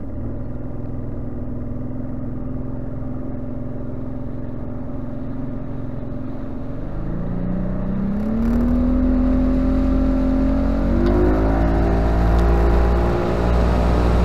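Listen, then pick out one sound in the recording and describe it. A boat's motor hums steadily, then revs up and rises in pitch.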